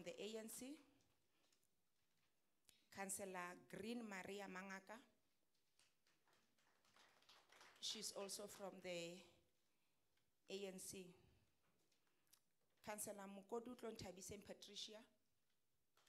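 A woman speaks slowly into a microphone, reading out in bursts with pauses.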